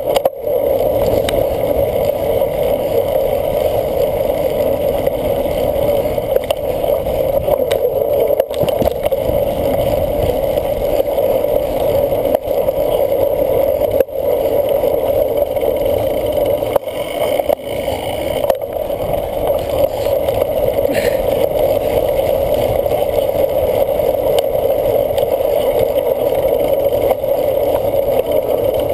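Wind rushes past a cyclocross bicycle riding at speed.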